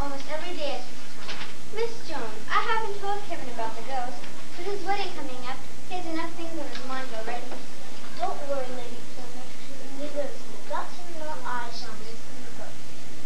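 A young girl speaks up to a room, heard from a little distance.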